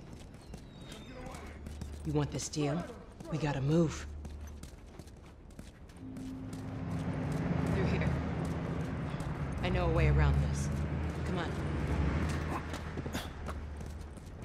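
Footsteps run on hard ground.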